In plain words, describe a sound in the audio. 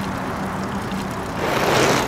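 A bicycle freewheels with a soft ticking.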